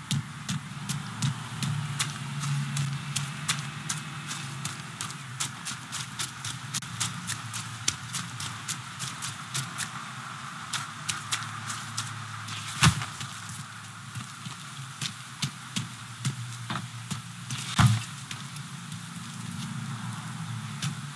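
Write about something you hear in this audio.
Quick footsteps run over gravel and concrete.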